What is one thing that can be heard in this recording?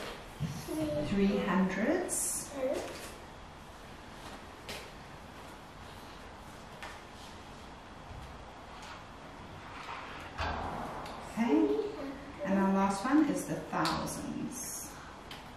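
A young woman speaks gently and close by.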